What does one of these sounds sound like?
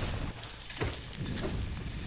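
A blade slashes and strikes with a sharp hit.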